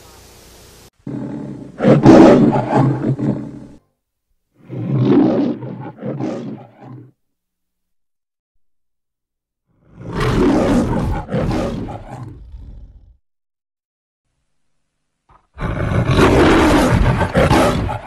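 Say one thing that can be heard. A lion roars loudly, again and again.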